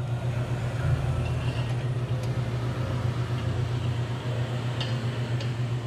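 Metal parts click and tap as a hand handles them.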